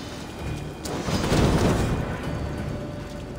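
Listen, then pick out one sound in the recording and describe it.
Flames burst with a loud whoosh and crackle.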